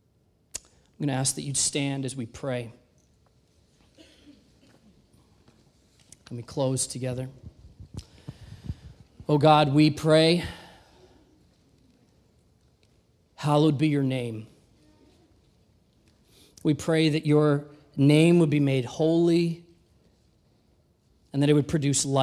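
A young man speaks calmly into a microphone, heard through loudspeakers in a large echoing hall, with pauses.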